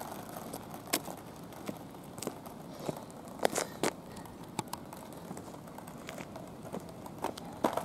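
Footsteps scuff on asphalt.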